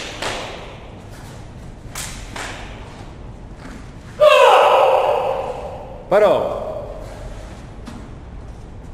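A man's uniform snaps sharply with quick punches and kicks.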